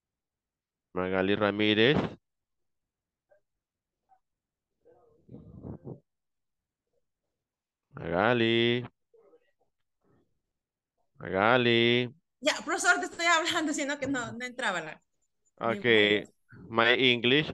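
A woman speaks slowly and clearly over an online call.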